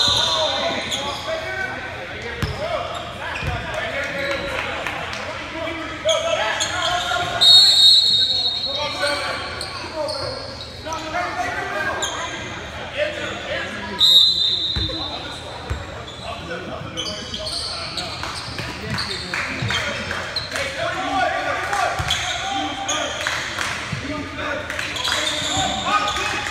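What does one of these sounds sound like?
Players and onlookers talk and call out in a large echoing gym.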